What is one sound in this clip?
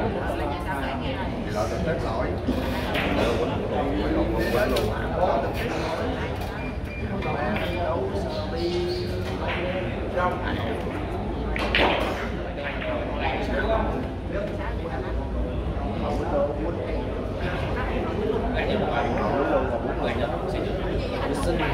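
Many people chatter in the background of a large room.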